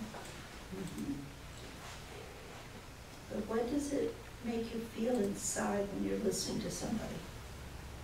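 An elderly woman speaks calmly nearby.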